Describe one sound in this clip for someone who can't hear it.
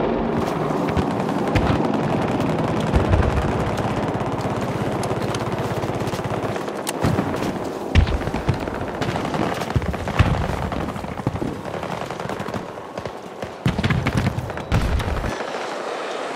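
Strong wind blows and rumbles outdoors.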